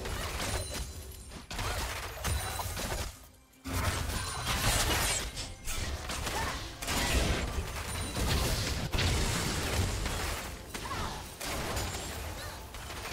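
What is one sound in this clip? Video game combat effects whoosh, clash and crackle in quick bursts.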